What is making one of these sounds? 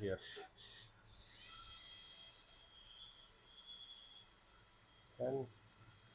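A dental drill whines at a high pitch.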